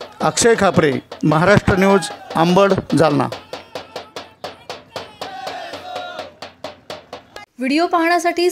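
A hand drum is beaten in a quick rhythm.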